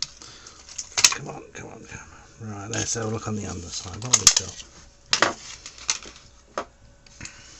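A circuit board clicks and rattles as it is pried loose and handled.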